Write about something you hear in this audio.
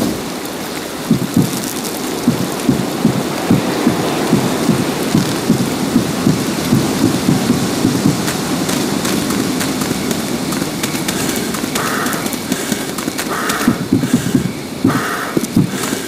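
Footsteps tramp steadily across a wooden bridge and then through grass.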